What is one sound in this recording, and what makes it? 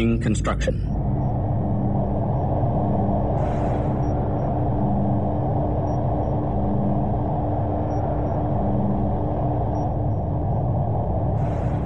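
Laser beams buzz continuously.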